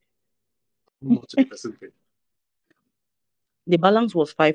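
A man speaks calmly and close to the microphone, with pauses.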